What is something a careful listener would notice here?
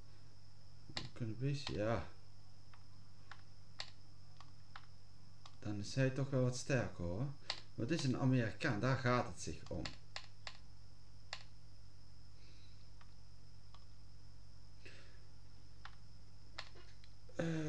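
Short soft clicks sound now and then as a game menu is moved through.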